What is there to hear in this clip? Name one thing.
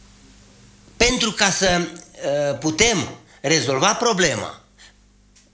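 An older man speaks calmly into a close microphone.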